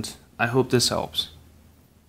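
A finger presses a phone's button with a soft click.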